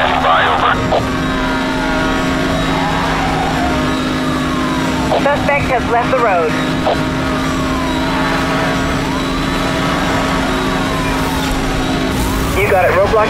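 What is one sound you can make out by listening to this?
A police siren wails with slow falling sweeps.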